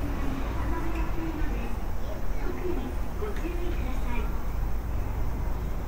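Distant city traffic rumbles steadily.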